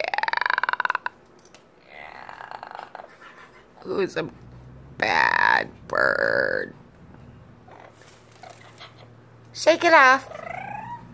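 A parrot squawks and chatters loudly close by.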